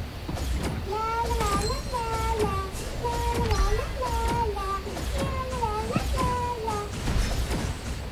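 A young woman talks softly near a microphone.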